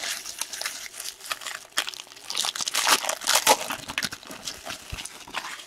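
Trading cards rustle and slap as a hand handles them.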